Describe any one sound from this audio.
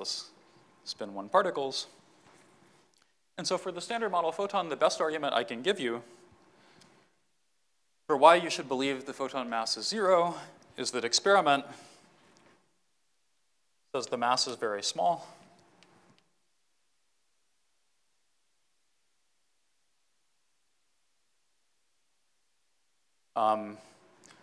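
A man lectures calmly into a microphone, in short bursts with pauses.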